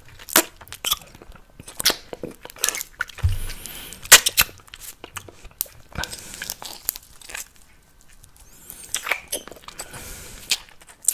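A man eats something crunchy close to a microphone, with sharp crisp crackles and mouth sounds.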